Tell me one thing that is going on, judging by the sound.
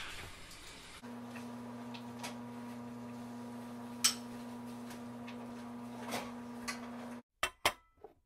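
An oven fan hums steadily.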